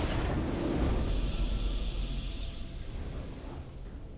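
A game fanfare plays for a victory.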